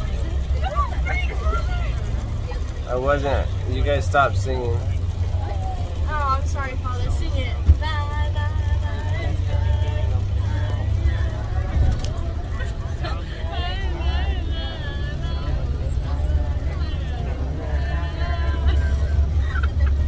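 A teenage girl talks and laughs close by.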